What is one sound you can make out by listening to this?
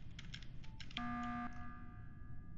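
A short electronic alarm tone sounds.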